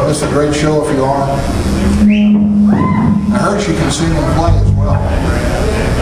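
A rock band's electric guitars play loudly.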